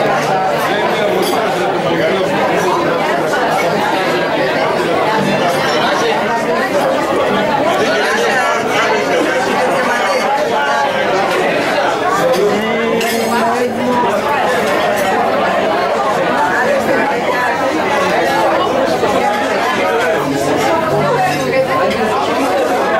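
A crowd of diners chatters loudly all around in an echoing hall.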